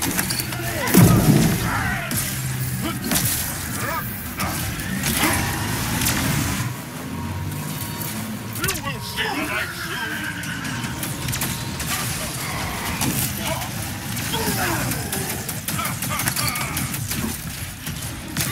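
Blasts and explosions boom loudly.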